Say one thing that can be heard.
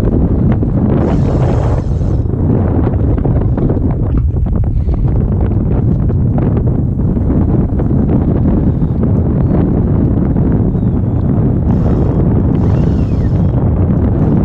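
A fishing reel's drag buzzes in short bursts.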